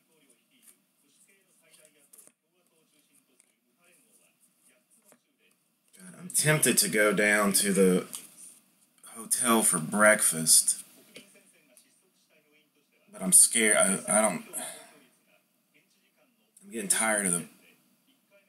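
Trading cards rustle and slide against each other in a person's hands.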